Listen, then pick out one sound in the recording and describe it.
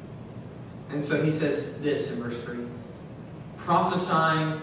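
A young man speaks calmly through a microphone.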